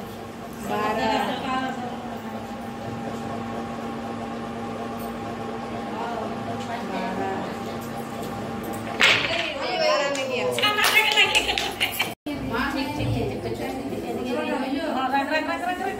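Women talk with animation nearby.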